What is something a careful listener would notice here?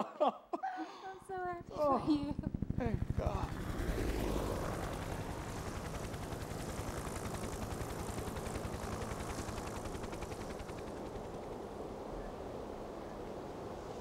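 Helicopter rotors thud loudly overhead.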